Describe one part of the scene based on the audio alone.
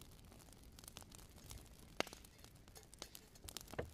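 A metal kettle clinks onto a stove.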